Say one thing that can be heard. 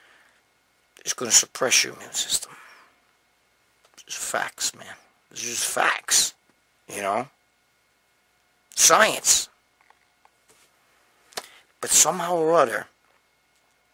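A middle-aged man speaks close to the microphone with animation, in short bursts.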